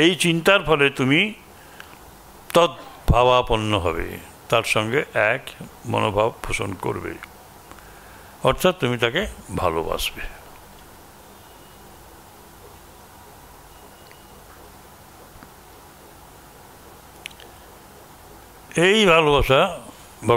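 A middle-aged man reads aloud calmly into a microphone.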